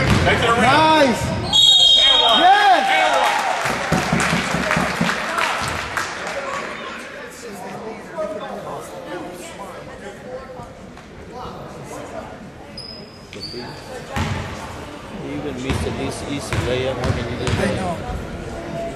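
A basketball thuds as it bounces on the court.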